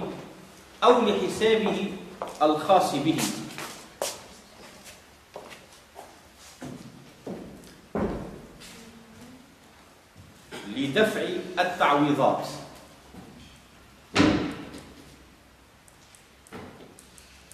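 A man speaks calmly and slowly, close by.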